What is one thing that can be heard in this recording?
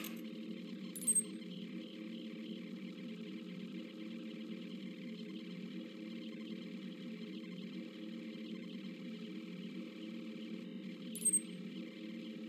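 A short electronic menu blip sounds twice.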